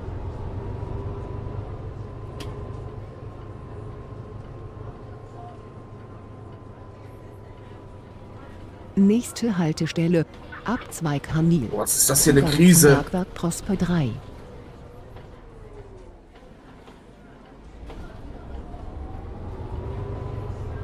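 A bus engine hums steadily and rises and falls as the bus drives.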